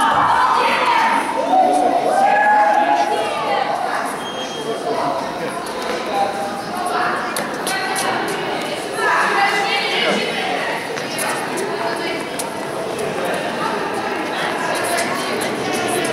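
Children chatter and shout in an echoing hall.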